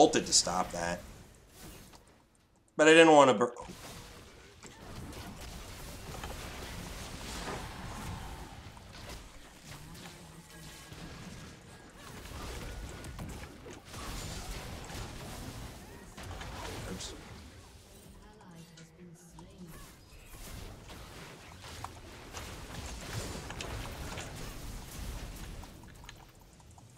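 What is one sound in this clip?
Game spells whoosh and clash in quick bursts.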